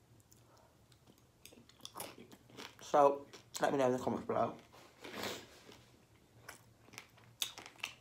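A young woman chews food wetly close to a microphone.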